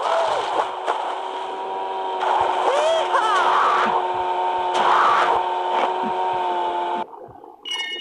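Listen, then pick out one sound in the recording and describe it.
A jet ski engine drones steadily.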